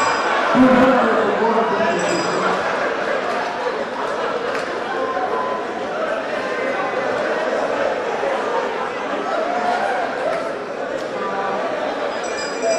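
A crowd of men and women murmur and talk over one another in a large room.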